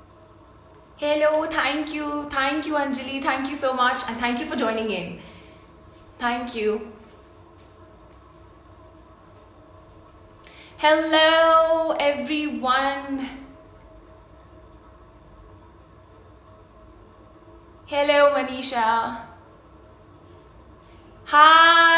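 A young woman speaks with animation, close to the microphone, in bursts with pauses.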